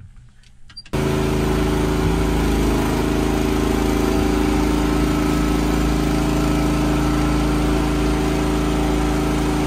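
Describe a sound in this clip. A small engine drones loudly and steadily.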